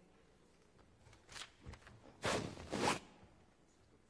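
Papers rustle nearby.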